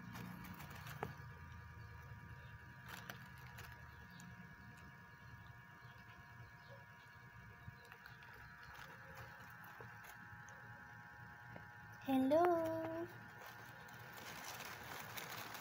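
A hamster rustles through shredded paper.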